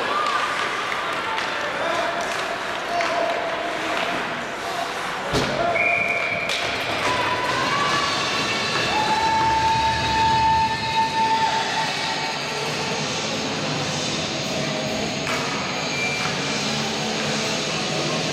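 Skates scrape and carve across the ice in a large echoing arena.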